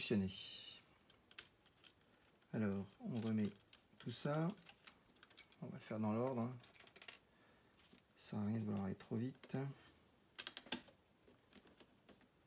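A plastic casing clicks as it is pressed together.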